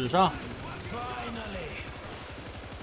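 Zombies snarl and shriek.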